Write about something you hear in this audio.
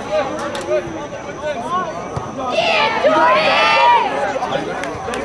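A crowd of spectators nearby talks and cheers.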